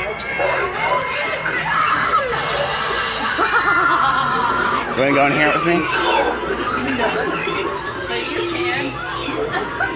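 A clown prop talks in a creepy recorded voice through a small loudspeaker.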